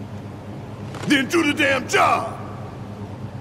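A man with a deep voice speaks forcefully.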